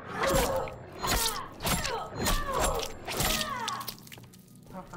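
A woman groans and cries out in pain.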